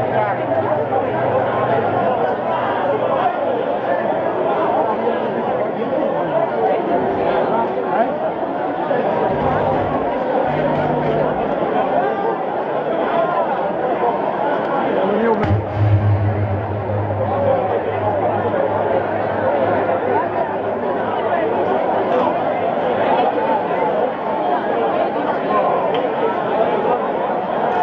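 A dense crowd of people chatters and shouts over the music.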